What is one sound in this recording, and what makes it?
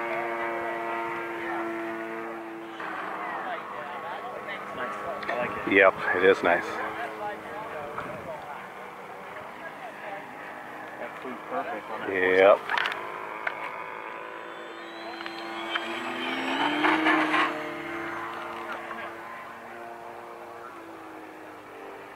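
A model airplane engine buzzes with a steady high whine.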